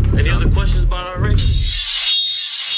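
A young man raps forcefully, close up.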